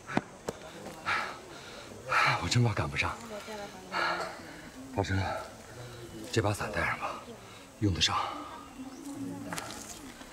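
A middle-aged man speaks with animation, close by.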